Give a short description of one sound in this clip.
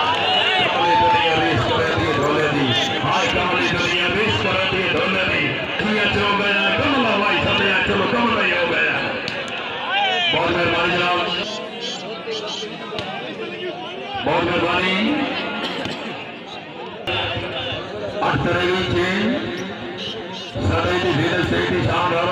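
A large outdoor crowd chatters and cheers.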